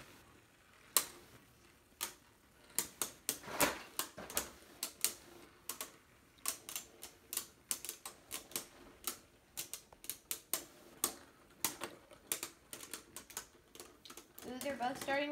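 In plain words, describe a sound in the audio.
Spinning tops clatter and click against each other in a plastic arena.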